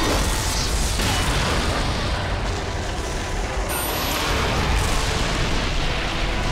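A fiery magic blast roars and crackles.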